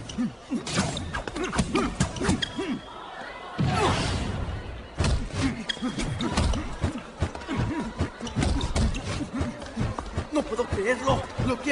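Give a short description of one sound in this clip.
Boxing gloves thud against each other in quick punches.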